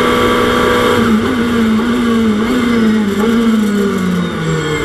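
A racing car engine blips repeatedly as it shifts down before a bend.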